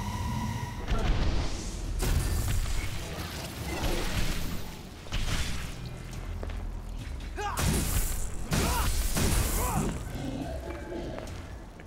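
A heavy sword swings and strikes with sharp metallic clashes.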